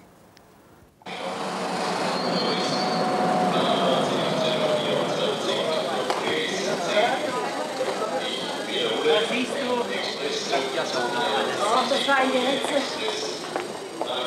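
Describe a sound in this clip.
Footsteps clatter on a hard floor.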